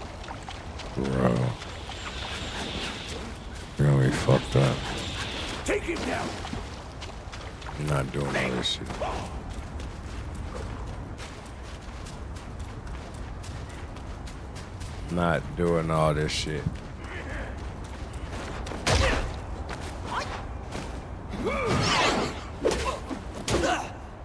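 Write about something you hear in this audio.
A young woman talks with animation close to a headset microphone.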